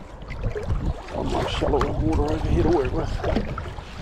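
Water splashes around legs wading through a stream.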